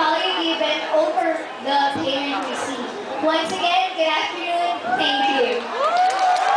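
A young woman speaks into a microphone through loudspeakers in a large echoing hall.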